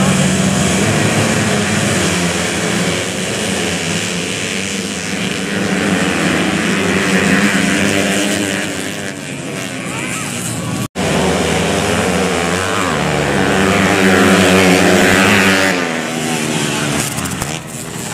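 Dirt bike engines rev loudly and whine past, close by.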